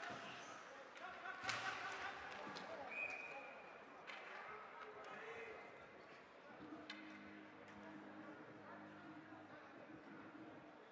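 A crowd murmurs and shouts in a large echoing arena.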